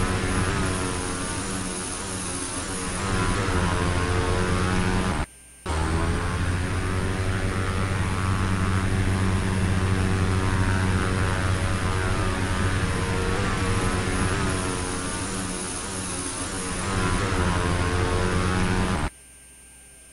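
Propeller engines drone steadily, rising and falling slightly in pitch.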